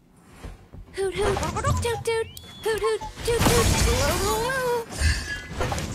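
Short pitched game tones chirp and warble.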